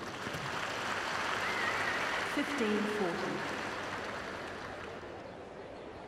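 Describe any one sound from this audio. A large crowd applauds and cheers, then quiets down.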